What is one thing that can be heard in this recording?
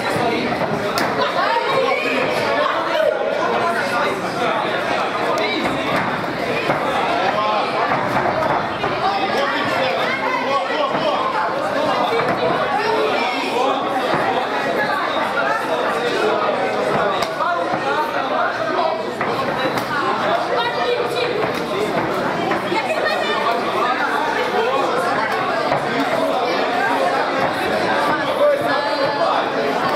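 A crowd of spectators shouts and cheers loudly nearby.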